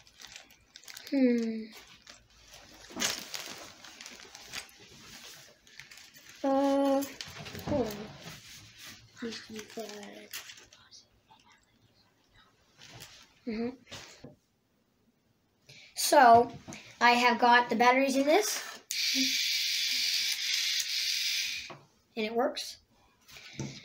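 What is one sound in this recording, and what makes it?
A young child speaks close by, with animation.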